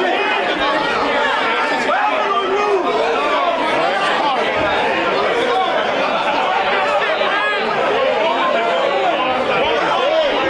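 A crowd of young men and women talks and calls out loudly all around.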